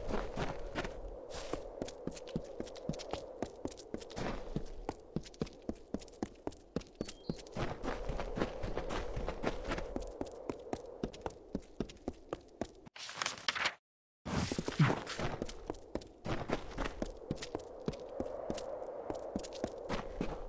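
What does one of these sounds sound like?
Footsteps patter quickly on a stone path.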